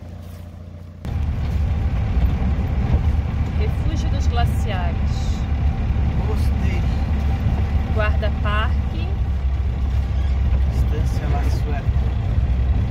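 A vehicle engine rumbles steadily from inside the car.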